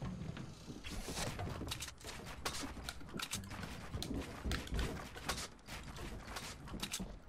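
Rapid building sounds clack and thud.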